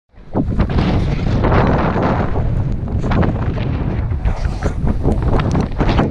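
Strong wind roars and buffets loudly outdoors.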